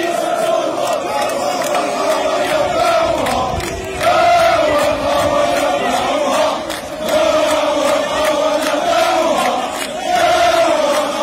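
A crowd of men claps hands in rhythm.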